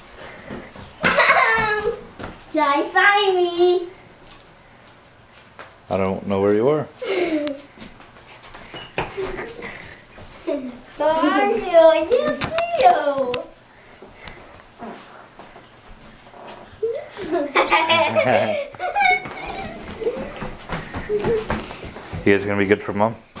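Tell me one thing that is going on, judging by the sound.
A young boy speaks excitedly close by.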